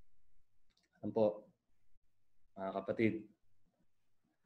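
A young man speaks calmly into a close microphone, in short phrases with pauses.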